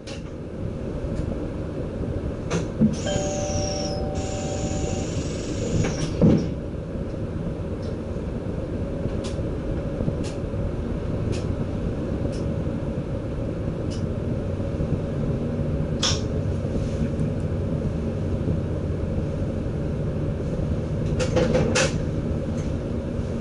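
A train's motor hums and rumbles steadily.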